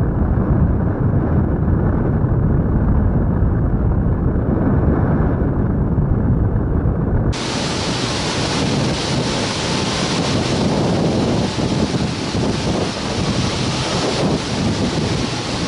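Wind rushes loudly past the microphone in flight.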